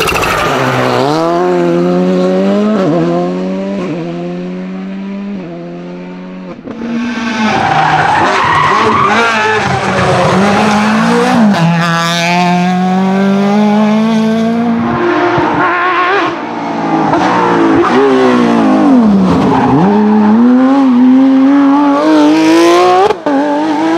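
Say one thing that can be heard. Engines shift gears with sharp rises and drops in pitch.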